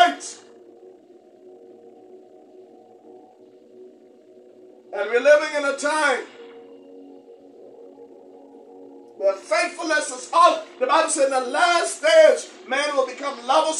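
A man preaches with animation into a microphone, pausing between bursts of speech.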